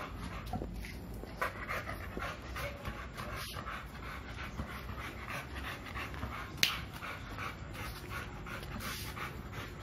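A dog's claws click on a hard floor.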